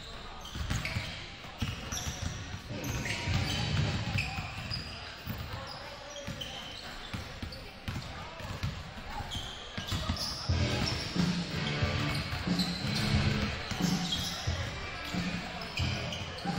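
Basketballs bounce on a wooden floor in a large echoing gym.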